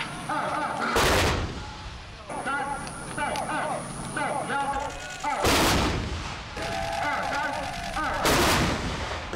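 Heavy guns fire loud booming blasts that roll away outdoors.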